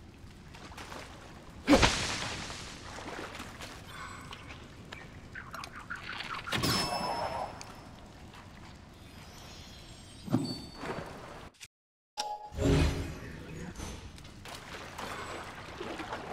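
Water splashes as someone wades and swims through it.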